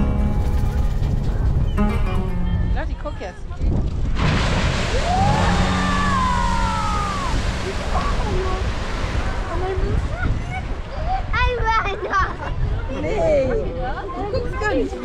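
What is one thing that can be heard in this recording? A crowd of onlookers chatters and exclaims nearby.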